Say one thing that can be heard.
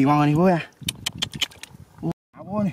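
Wet mud squelches under digging hands.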